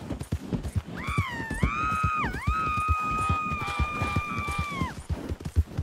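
A horse whinnies loudly.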